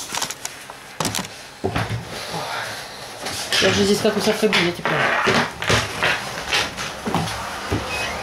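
Keys and a phone clatter on a table.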